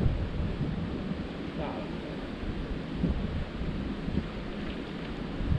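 A river flows and ripples over stones nearby.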